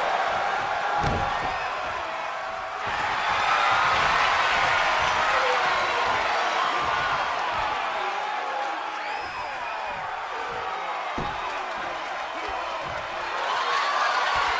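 A crowd cheers and roars loudly throughout.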